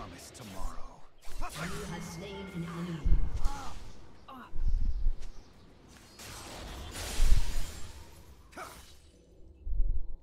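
Magic spells whoosh and crackle in a fantasy battle.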